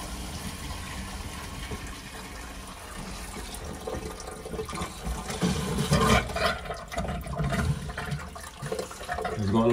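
Hands rummage and knock inside a panel.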